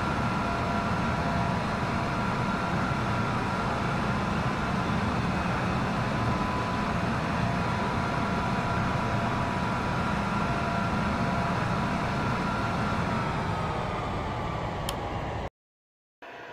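A jet engine hums and whines steadily, then winds down.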